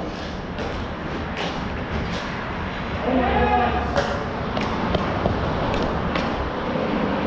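Hockey sticks clack sharply against a ball and the floor.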